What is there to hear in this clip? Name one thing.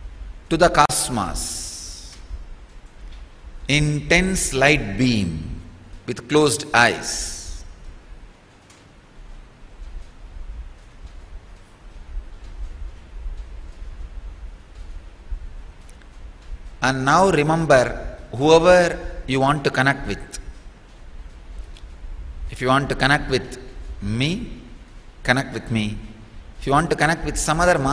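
A man speaks calmly into a microphone, in bursts with long pauses.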